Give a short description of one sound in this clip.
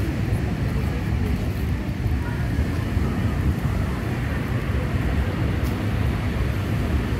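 Wind rumbles and buffets outdoors.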